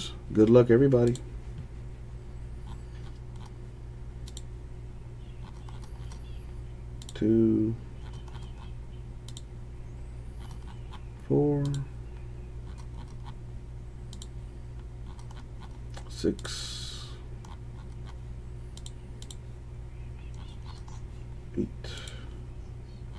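A computer mouse clicks several times.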